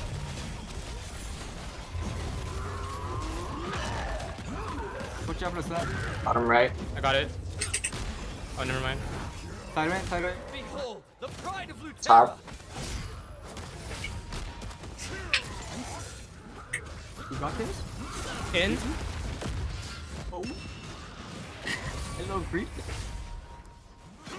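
Magic blasts crackle and boom in a fast fantasy battle.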